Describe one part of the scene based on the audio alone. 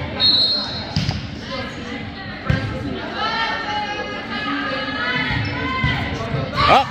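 A volleyball thumps off players' hands and arms.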